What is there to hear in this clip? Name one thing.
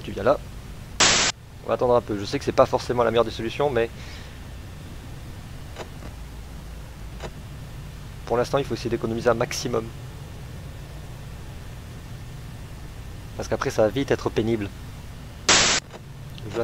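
A burst of static hisses loudly.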